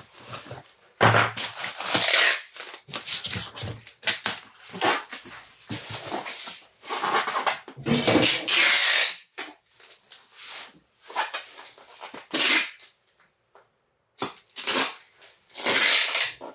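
Packing tape screeches as it is pulled off a roll.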